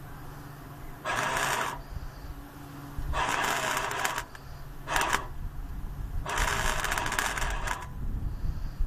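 An arc welder crackles and sizzles in short bursts.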